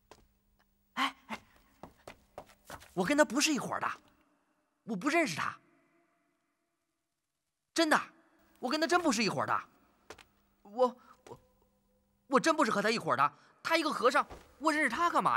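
A young man pleads nervously and close by.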